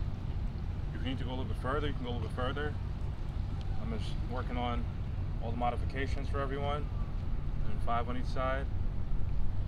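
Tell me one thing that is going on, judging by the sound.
A man speaks close by, slightly out of breath.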